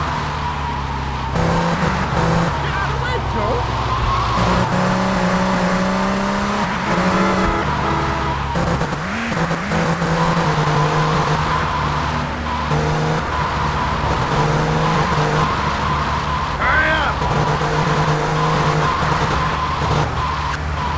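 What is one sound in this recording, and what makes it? A car engine revs and roars steadily as it speeds along.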